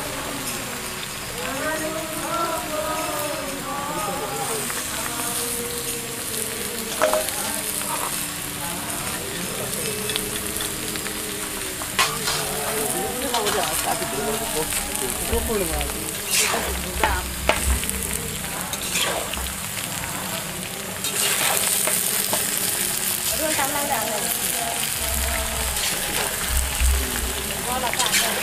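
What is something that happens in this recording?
A wood fire crackles and roars.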